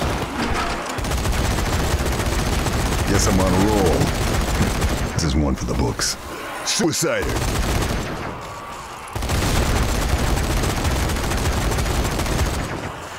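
A rapid-firing machine gun roars in long bursts.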